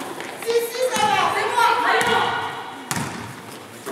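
A basketball bounces on the hard floor.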